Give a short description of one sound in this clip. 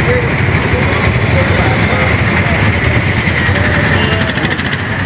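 Vehicle horns honk briefly now and then.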